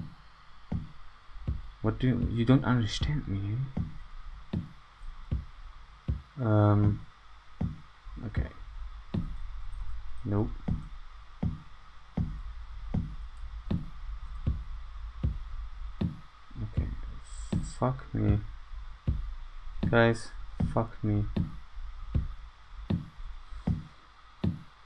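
Footsteps thud steadily across a floor.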